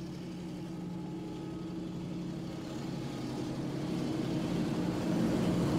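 A diesel locomotive rumbles as it approaches, growing louder.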